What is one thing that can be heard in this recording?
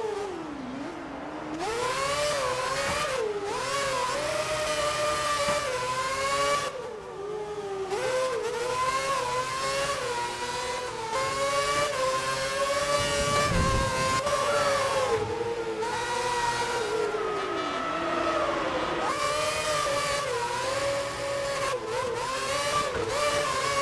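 A V8 Formula One car screams at high revs, its pitch rising and dropping through gear changes.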